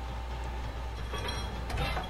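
Buttons click on a control panel.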